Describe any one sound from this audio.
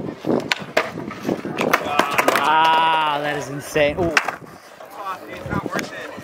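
A skateboard clatters onto concrete after a jump.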